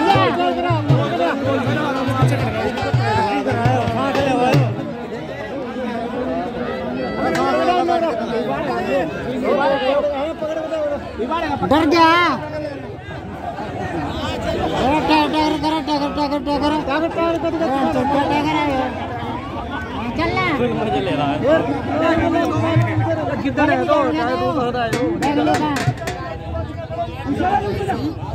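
A large crowd murmurs in the background.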